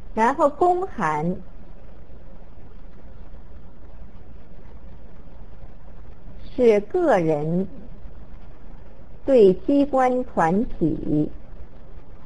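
A middle-aged woman speaks calmly and slowly through a microphone, with long pauses.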